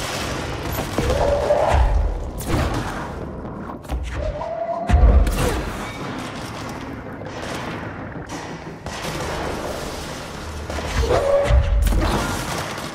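Heavy gunshots and blasts boom in short bursts.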